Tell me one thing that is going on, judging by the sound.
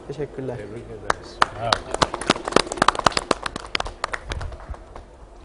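A group of men clap their hands.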